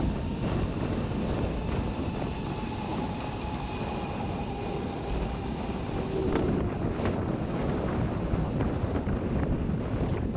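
Wind rushes and buffets steadily.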